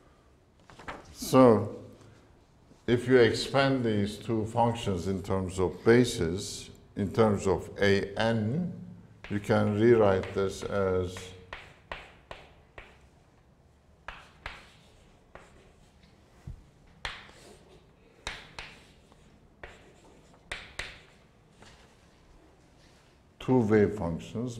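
A middle-aged man lectures.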